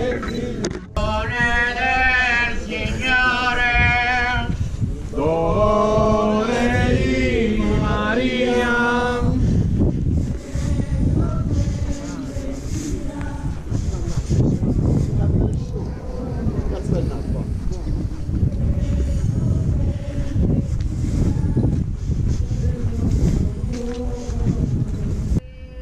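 Many footsteps shuffle on a paved road.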